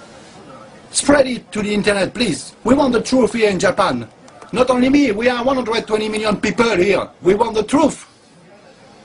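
A man speaks emphatically and close up.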